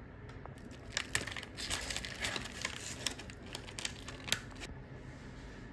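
Crispy fried crust crunches and crackles as it is torn apart.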